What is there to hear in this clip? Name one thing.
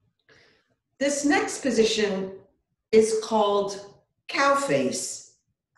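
An older woman speaks calmly and clearly, close by.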